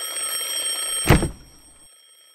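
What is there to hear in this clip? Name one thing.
A hand slaps down on an alarm clock with a thud.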